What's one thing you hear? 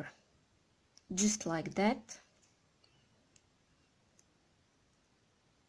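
Small plastic beads click softly against each other.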